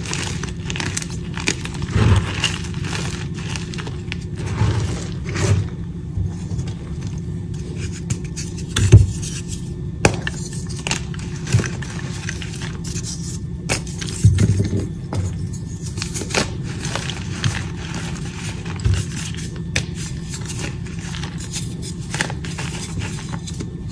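Chalk powder and crumbs patter down onto a loose pile.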